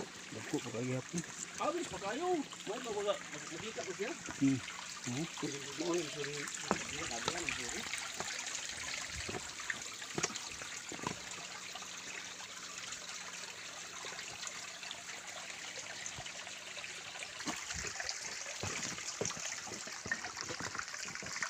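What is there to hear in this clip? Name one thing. Footsteps scuff and tap on rock.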